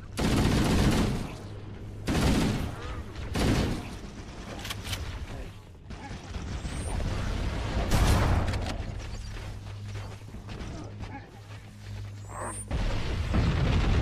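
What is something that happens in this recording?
Gunfire bursts in short loud volleys.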